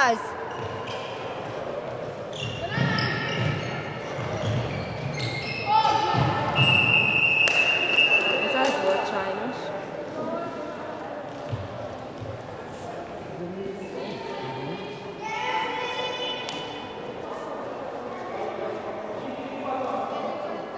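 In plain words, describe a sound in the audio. Young female players shout and call out to each other in a large echoing hall.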